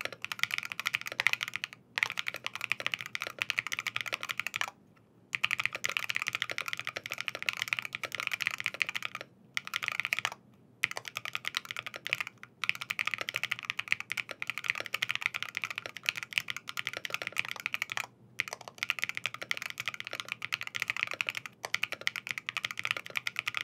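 Fingers type quickly on a mechanical keyboard, with soft clacking keystrokes and short pauses.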